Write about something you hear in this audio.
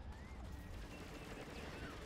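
A laser beam zaps in a video game.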